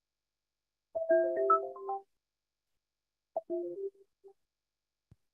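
An elderly man speaks briefly and calmly over an online call.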